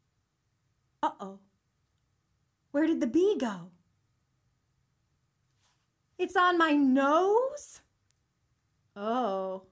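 A young woman makes short, nasal vocal sounds close by.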